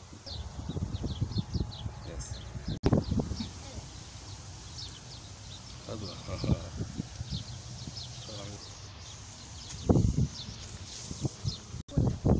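Dry reeds rustle and brush close by.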